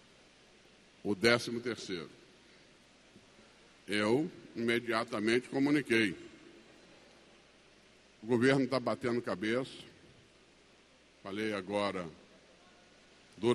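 An older man speaks calmly into a microphone in short bursts, heard over a loudspeaker.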